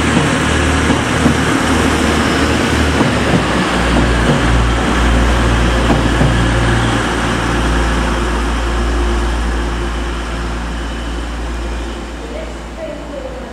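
A train rumbles past on the tracks and fades away.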